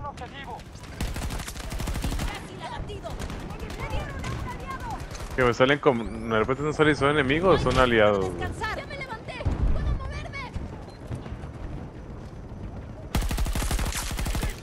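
A rifle fires in rapid bursts at close range.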